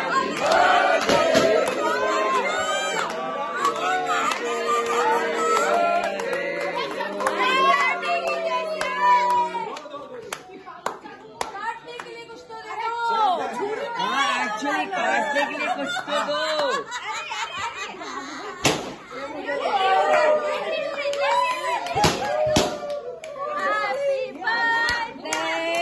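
A young woman shrieks and laughs loudly up close.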